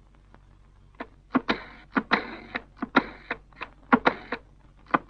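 A rotary phone dial clicks and whirs.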